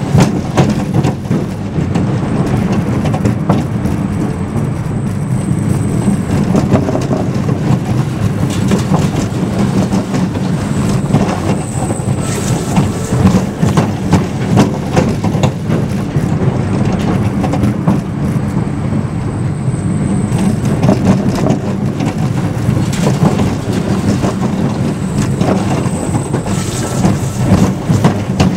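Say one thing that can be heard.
A roller coaster car rumbles and clatters along its track.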